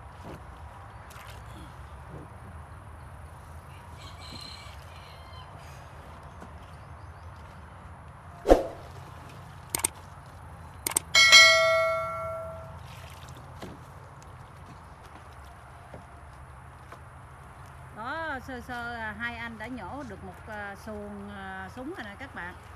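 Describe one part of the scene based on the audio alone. Water splashes as lotus stems are pulled from a pond.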